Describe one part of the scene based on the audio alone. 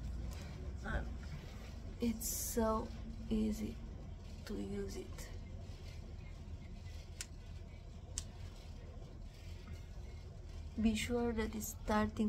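Hair rustles under fingers close to a microphone.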